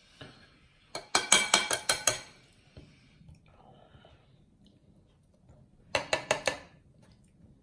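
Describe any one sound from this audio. Metal tongs clatter against a bowl.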